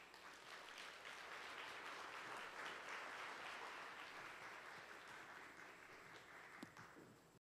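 A large audience applauds in a large hall.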